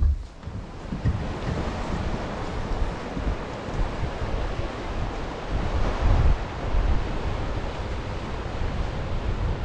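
Waves wash over rocks along the shore.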